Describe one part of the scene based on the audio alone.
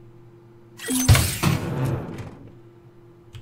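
A metal case clanks open.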